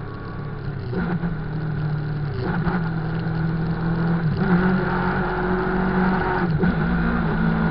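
A motorcycle engine revs sharply several times.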